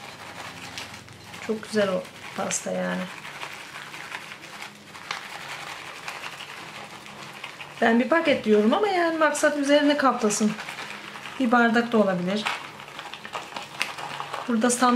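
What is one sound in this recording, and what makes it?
A plastic bag crinkles as it is shaken.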